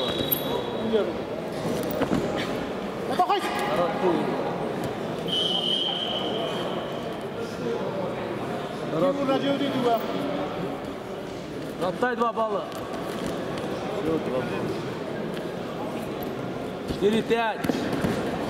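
Feet scuff and thump on a mat in a large echoing hall.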